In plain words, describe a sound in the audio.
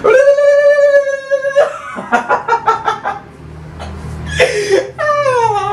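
A young person lets out a long, drawn-out playful cry that slides down in pitch.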